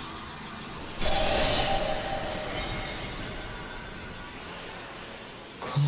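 A powerful energy burst whooshes and roars.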